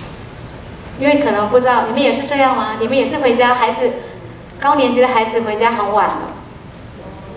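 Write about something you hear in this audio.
A young woman speaks into a microphone through loudspeakers in a large hall.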